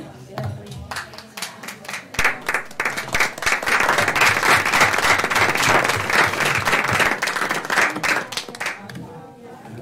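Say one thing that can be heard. A crowd applauds steadily.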